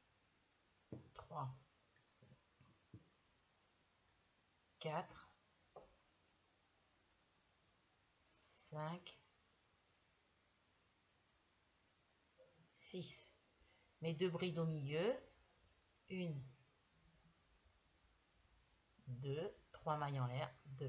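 A woman speaks calmly, close by, in short bursts with pauses.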